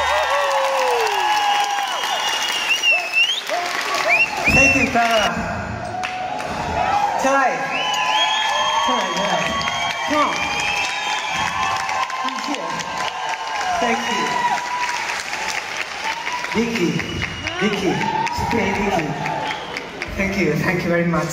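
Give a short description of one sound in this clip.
A large crowd screams and cheers loudly in a big echoing hall.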